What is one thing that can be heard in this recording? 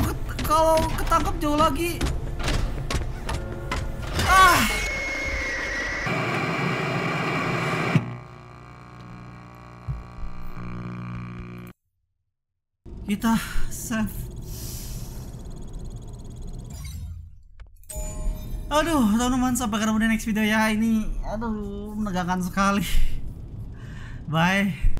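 A boy speaks with animation into a close microphone.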